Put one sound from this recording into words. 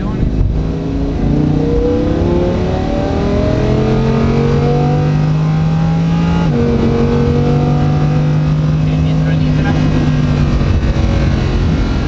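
A powerful car engine roars and climbs in pitch as it accelerates.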